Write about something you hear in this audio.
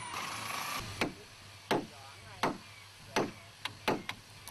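A hammer pounds on a wooden boat hull.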